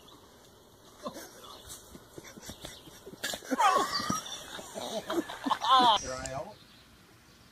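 A man laughs and shouts outdoors.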